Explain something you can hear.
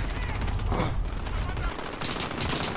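A sniper rifle fires a heavy shot in a video game.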